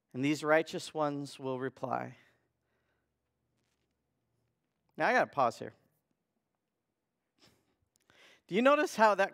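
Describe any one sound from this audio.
A man speaks calmly and clearly through a microphone, reading out.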